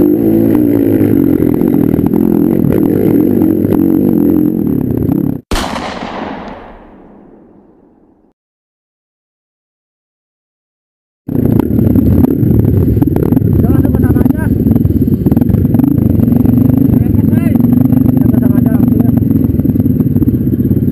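A motorcycle engine roars up close as it rides over rough ground.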